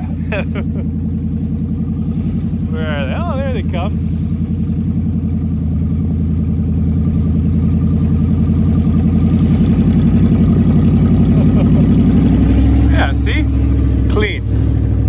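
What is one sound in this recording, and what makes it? A vehicle engine hums steadily and loudly close by.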